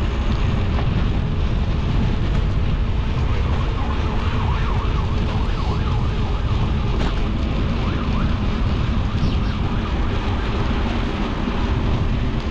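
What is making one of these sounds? Bicycle tyres roll steadily over pavement.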